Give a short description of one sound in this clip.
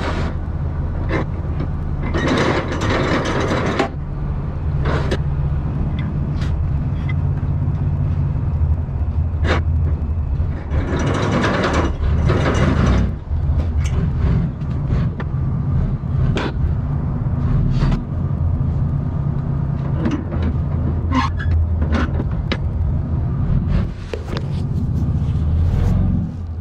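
A trailer rattles and clanks as the truck rolls.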